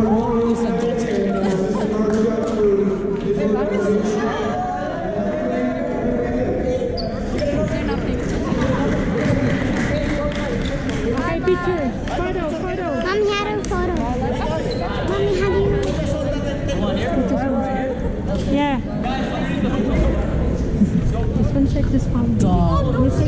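Many voices chatter and shout across a large echoing hall.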